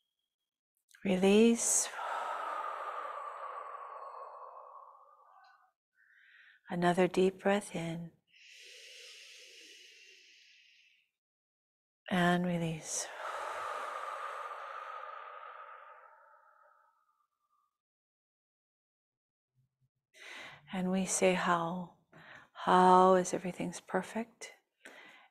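A woman speaks calmly and slowly through a microphone.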